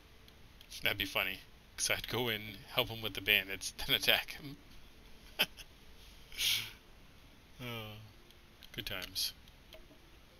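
A young man talks casually, close to a microphone, in short bursts.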